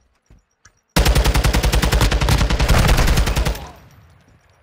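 An automatic rifle fires a long, loud burst at close range.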